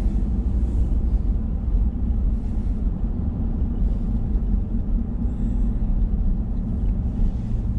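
Tyres rumble steadily on a rough road.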